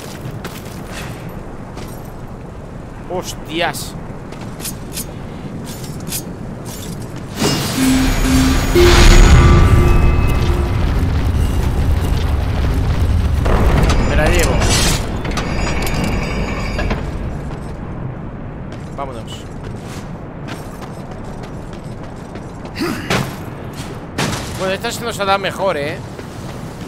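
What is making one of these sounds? A young man talks through a microphone.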